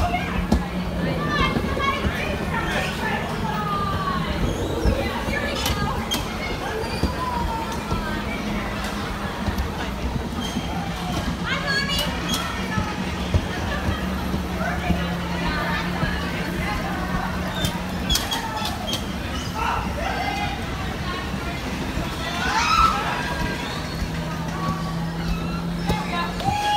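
Bumper cars hum and roll across a floor.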